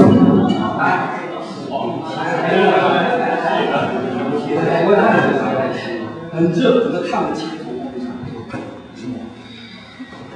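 A man speaks with animation in a room with some echo.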